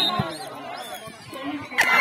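Men cheer loudly as the players attack the goal.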